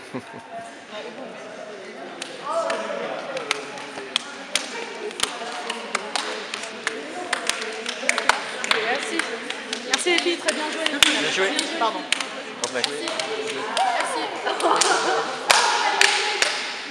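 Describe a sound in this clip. Young women chatter and call out cheerfully nearby.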